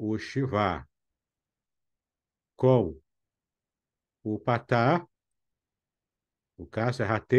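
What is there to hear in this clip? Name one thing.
A man speaks calmly in short phrases through a microphone on an online call.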